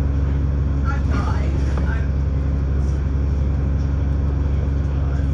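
A bus engine hums low and steady while driving.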